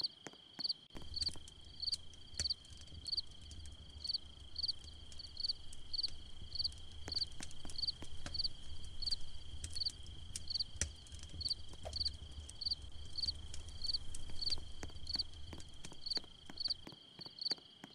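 A campfire crackles and roars nearby.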